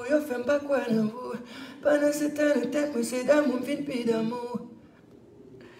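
A young man sings close into a microphone.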